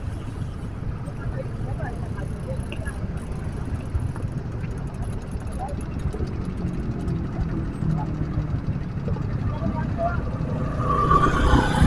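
Traffic passes on a road nearby.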